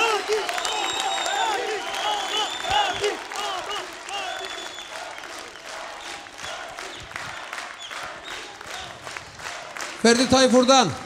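A large crowd claps along in a big hall.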